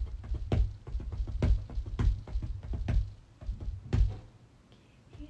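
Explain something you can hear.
Drumsticks tap out a quick rhythm close by.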